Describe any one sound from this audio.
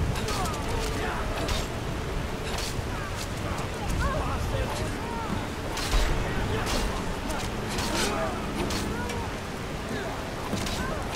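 Steel swords clash and clang.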